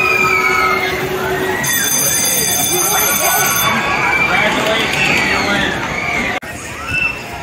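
Electronic game tones beep and chime.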